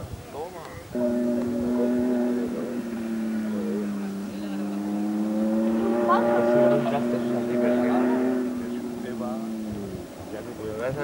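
A rally car engine roars and revs in the distance.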